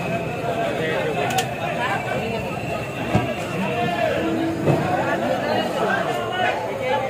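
A train rumbles as it rolls along a platform.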